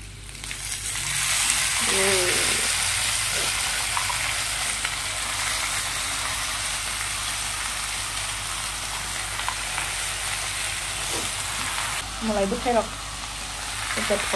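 Leafy greens sizzle and hiss in a wok.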